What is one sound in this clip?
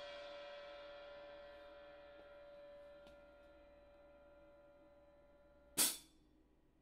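A cymbal rings and slowly fades away.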